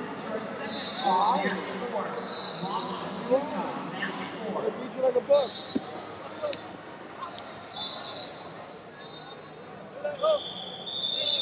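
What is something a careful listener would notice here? Men in the crowd shout loudly from a distance.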